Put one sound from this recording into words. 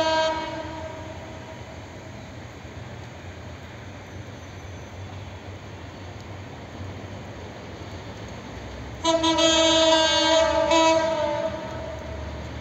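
A train horn blares loudly in short blasts.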